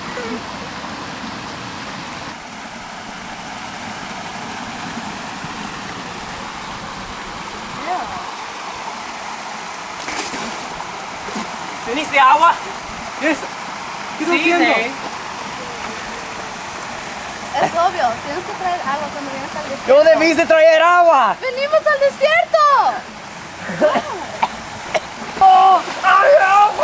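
Water splashes and ripples over rocks.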